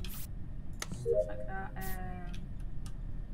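A short electronic chime sounds as a game task completes.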